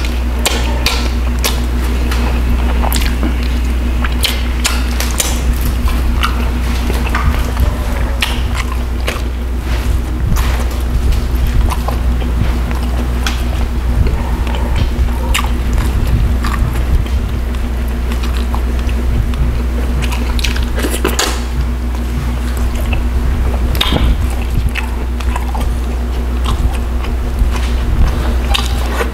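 A man chews food wetly and loudly, close to a microphone.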